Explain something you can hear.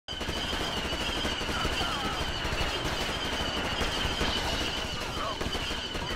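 An energy rifle fires rapid bursts of shots.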